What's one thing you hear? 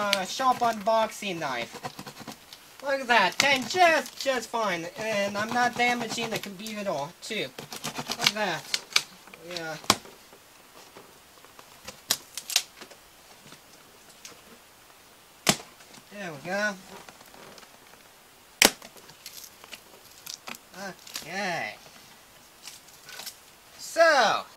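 A cardboard box scrapes and thumps as it is moved.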